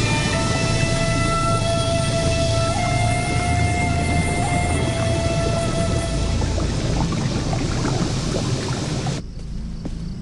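Water churns and splashes.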